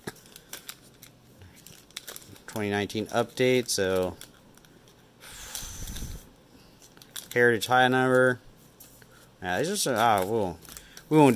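Foil wrappers crinkle and rustle as they are handled.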